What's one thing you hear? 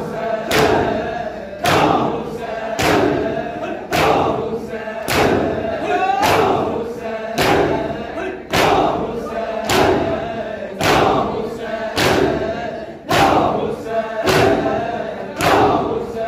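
A crowd of men beat their chests in a steady, loud rhythm that echoes around them.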